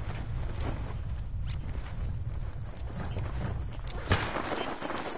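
Wind rushes past during a parachute descent.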